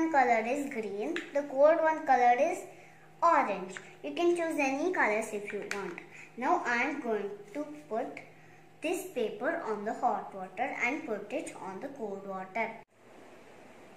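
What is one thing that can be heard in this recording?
A young girl talks calmly and clearly, close by.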